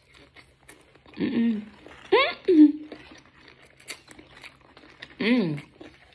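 A young woman chews food noisily close to a microphone.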